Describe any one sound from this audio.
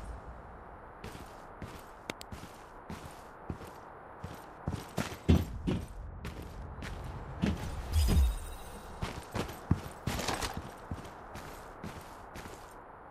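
Footsteps crunch quickly over gravel and hard ground.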